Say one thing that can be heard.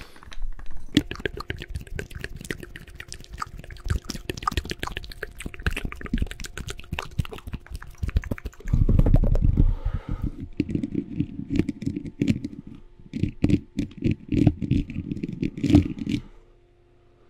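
Fingers tap and scratch on a microphone, close and crackly.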